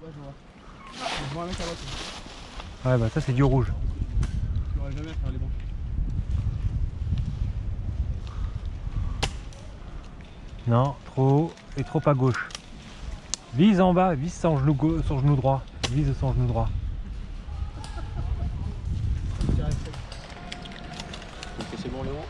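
Dry leaves rustle and crunch as men shift on the ground.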